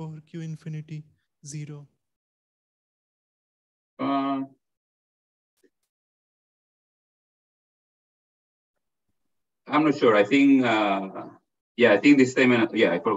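A man lectures calmly through an online call, with pauses.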